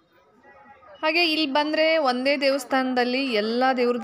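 A man chants loudly through a loudspeaker.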